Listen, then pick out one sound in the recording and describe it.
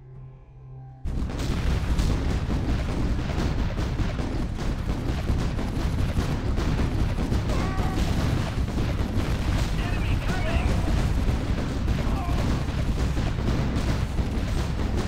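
Explosions boom and rumble again and again.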